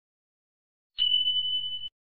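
A bell dings with a steady ring.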